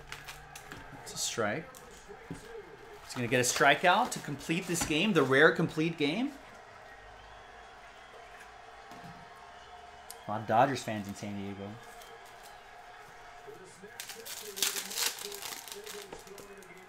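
Foil card packs crinkle and rustle in hands.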